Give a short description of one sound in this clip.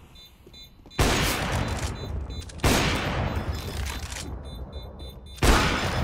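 A sniper rifle fires loud, booming shots that echo and slowly die away.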